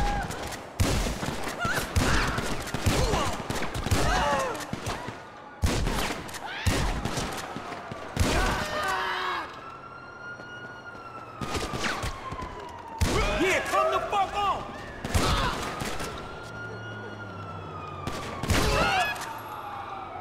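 A shotgun fires loud blasts in quick bursts.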